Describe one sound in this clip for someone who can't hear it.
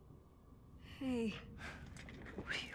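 A young woman gasps.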